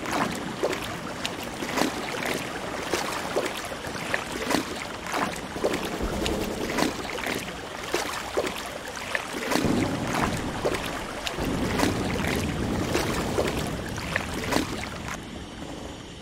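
Water splashes and sloshes.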